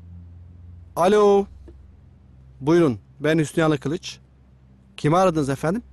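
A man talks calmly on a phone close by.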